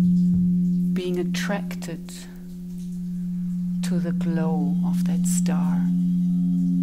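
A woman sings softly into a microphone.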